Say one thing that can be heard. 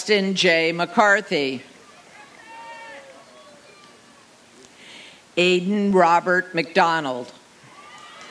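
A man reads out names over a loudspeaker, echoing outdoors.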